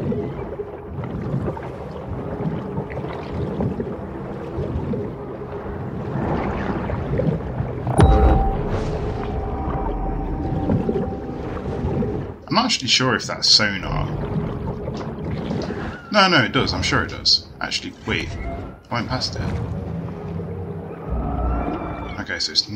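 A sea creature swims with a soft underwater whoosh.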